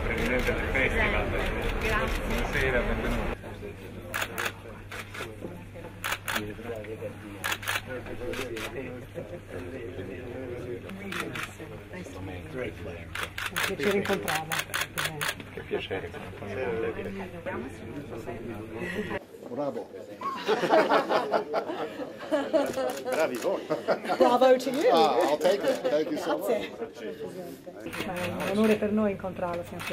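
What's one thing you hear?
A crowd of people murmurs and chats.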